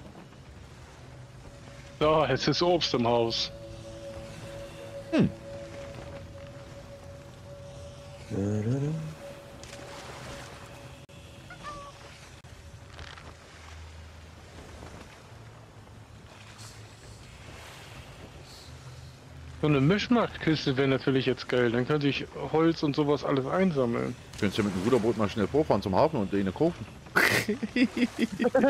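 Waves wash softly against a rocky shore.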